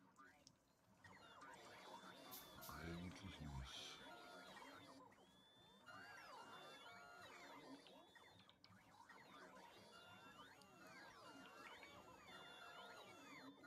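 Swarms of small flying robots whir and chirp busily.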